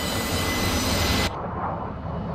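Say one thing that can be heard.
A jet flies past with a loud roar.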